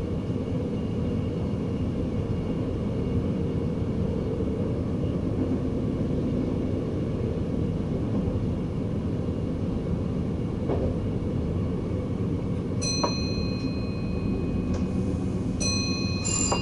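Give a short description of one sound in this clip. Wheels clack over rail joints.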